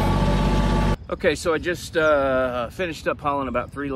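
A middle-aged man speaks calmly and close by, outdoors.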